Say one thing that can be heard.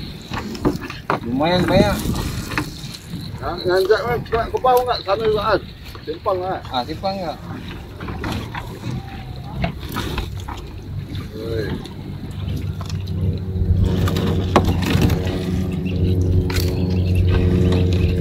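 A wet net scrapes and rattles against the side of a boat as it is hauled in.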